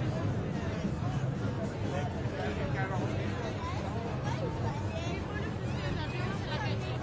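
A crowd of protesters chatters and calls out outdoors.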